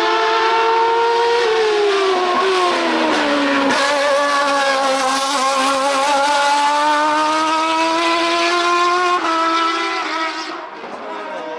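A race car engine screams loudly, shifting through gears as it climbs and passes close by.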